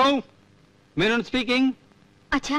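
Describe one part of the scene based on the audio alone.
A woman answers on a telephone, speaking calmly.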